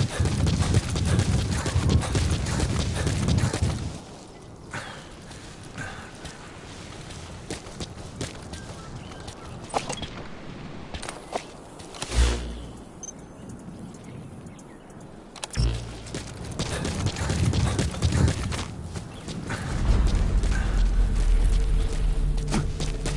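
Footsteps run quickly over dry dirt and gravel.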